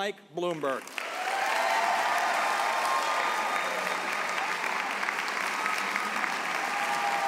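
A large crowd applauds and cheers loudly.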